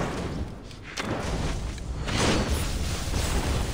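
Crackling energy bursts and blasts with a loud whoosh.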